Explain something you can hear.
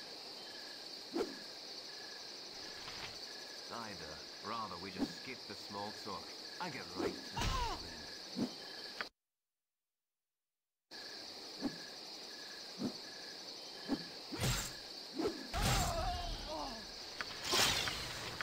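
Weapons strike and clang in a close fight.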